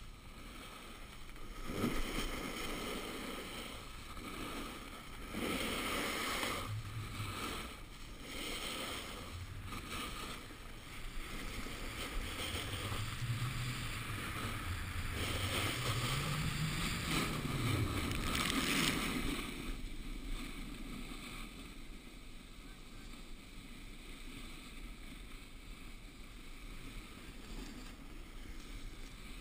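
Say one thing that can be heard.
Wind rushes and buffets past close by.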